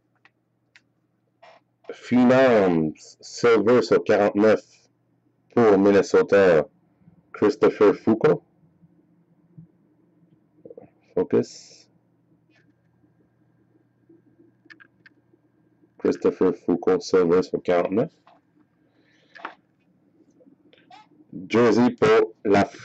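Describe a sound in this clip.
Trading cards rustle and slide against each other in hand.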